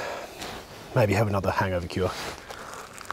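A man murmurs with pleasure through a mouthful of food.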